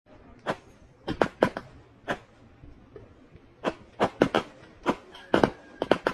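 Fireworks pop and crackle in quick bursts outdoors.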